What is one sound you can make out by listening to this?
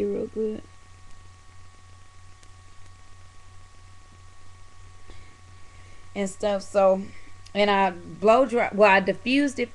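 A young woman speaks casually, close to a microphone.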